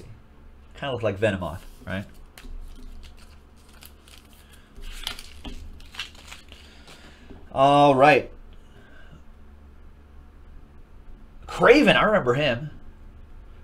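Trading card packs rustle and crinkle as they are handled.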